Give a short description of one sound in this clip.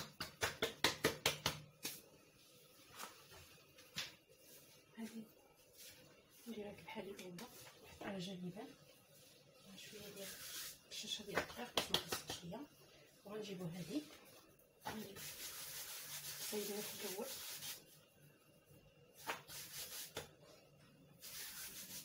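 Hands pat and slap soft dough on a stone counter.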